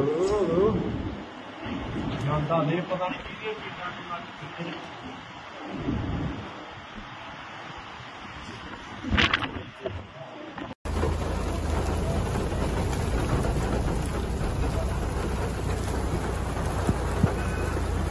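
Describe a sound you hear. Strong wind roars and buffets outdoors.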